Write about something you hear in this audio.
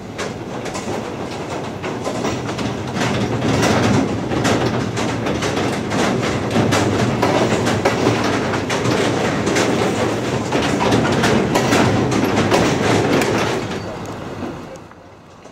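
Cars rumble down off a rail wagon nearby.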